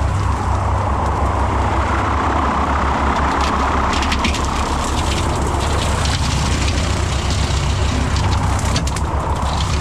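A mower deck rattles and clanks as it is raised and lowered.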